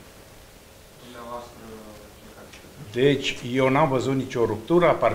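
A middle-aged man speaks firmly into a microphone at close range.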